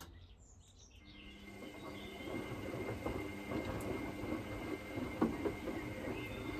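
Water sloshes and splashes inside a washing machine, growing louder.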